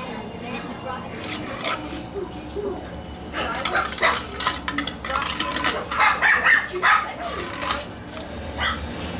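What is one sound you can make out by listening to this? Puppies' claws patter and scrabble on a hard floor as they play.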